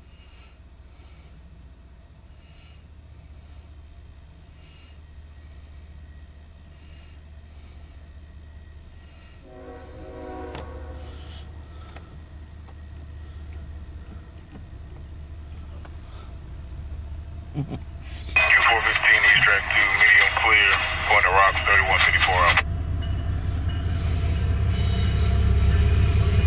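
A railway crossing bell rings in a steady rhythm.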